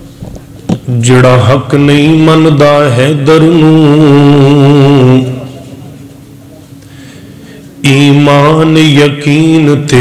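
A man chants in a long, melodic voice through a loud microphone, in bursts with pauses between them.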